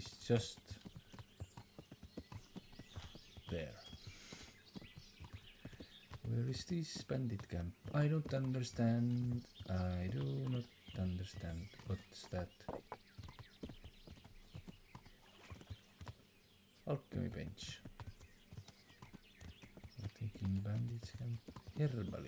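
A horse's hooves thud steadily on a dirt path.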